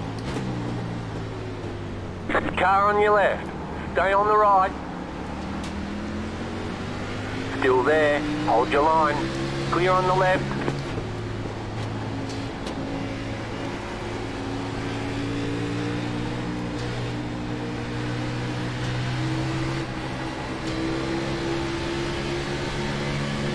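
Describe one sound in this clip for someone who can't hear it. A race car engine drones steadily, its pitch rising and falling as it shifts gears.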